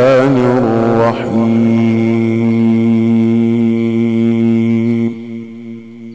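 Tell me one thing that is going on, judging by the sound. A man chants in a long, sustained melodic voice through a microphone, in a reverberant hall.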